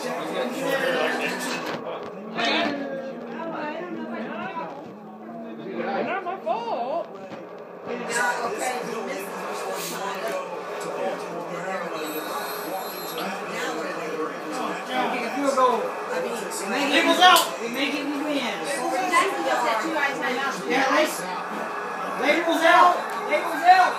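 Young men and women nearby shout and cheer excitedly.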